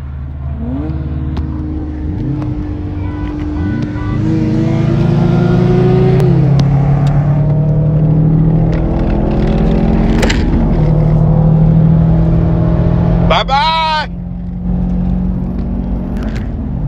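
A Subaru WRX STI's turbocharged flat-four accelerates hard through the gears, heard from inside the car.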